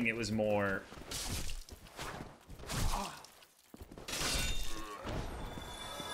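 Swords clash and armour clanks in a fight.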